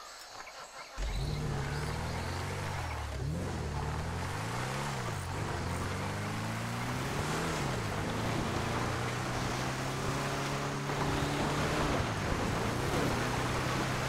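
An old off-road jeep's engine revs and shifts gears as the jeep drives off.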